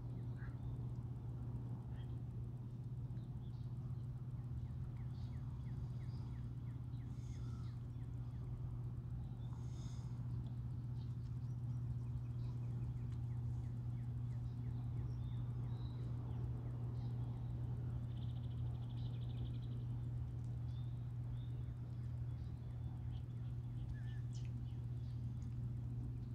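Water from a distant dam rumbles low and steady.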